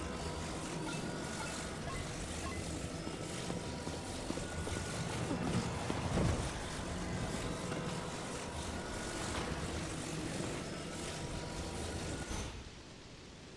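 A soft, magical hum drones steadily.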